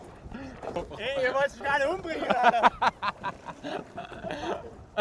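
A man laughs loudly and wildly, close by.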